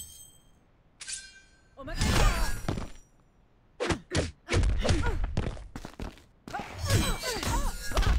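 An energy blade swooshes through the air.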